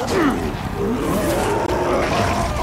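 A monster snarls and growls close by.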